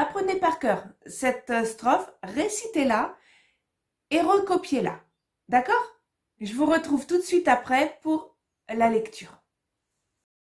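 A middle-aged woman reads out a short verse calmly and clearly, close to the microphone.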